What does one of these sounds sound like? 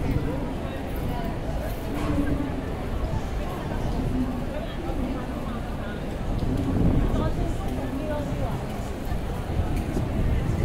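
A crowd of people murmurs and chatters outdoors on a busy street.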